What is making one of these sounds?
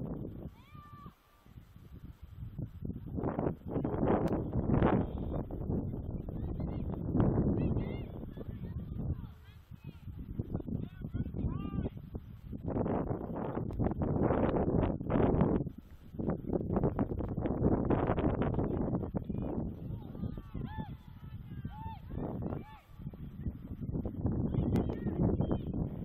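Young women shout faintly across an open field.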